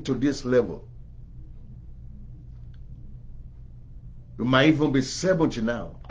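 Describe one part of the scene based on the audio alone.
A middle-aged man speaks calmly and close to the microphone, with pauses.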